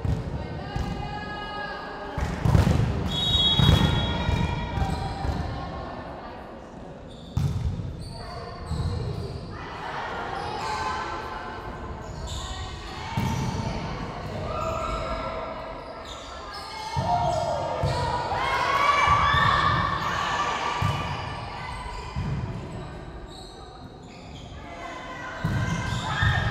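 Young girls shout and call out on court.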